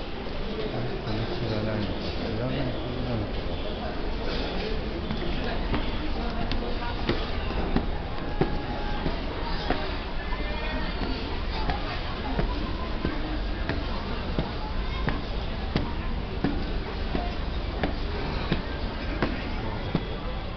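Footsteps tap on hard stone steps.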